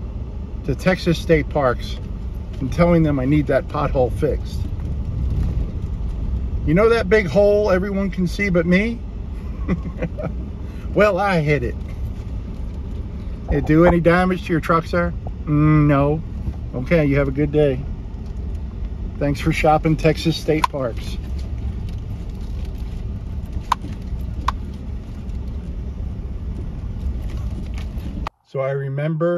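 A vehicle rumbles steadily over a bumpy dirt road.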